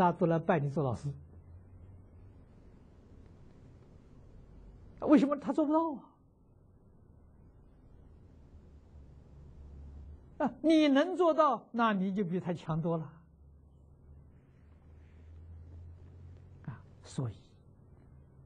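An elderly man speaks calmly and warmly, close to a microphone, in short phrases with pauses.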